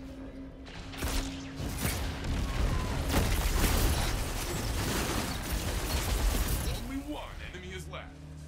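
Gunfire crackles in bursts amid the game's effects.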